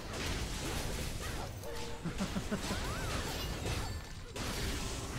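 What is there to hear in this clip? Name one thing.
Blades whoosh and clash in a fast fight.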